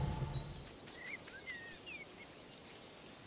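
A small bird chirps briefly.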